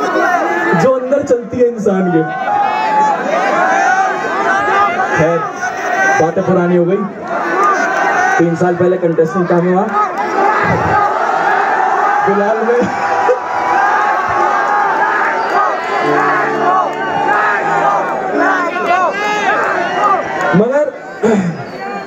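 A band's music plays loudly through speakers.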